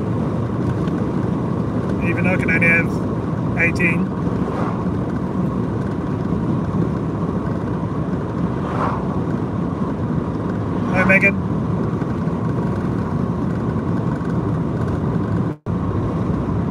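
Tyres roll steadily on a road with a low rumble.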